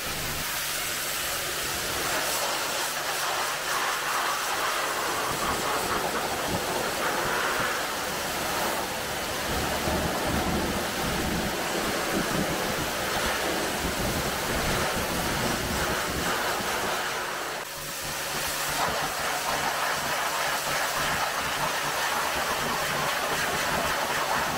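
A pressure washer sprays water hard against a car with a steady hiss.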